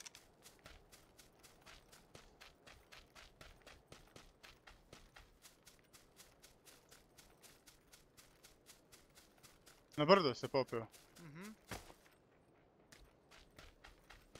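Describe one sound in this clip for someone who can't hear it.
Quick footsteps run steadily through grass and over dirt.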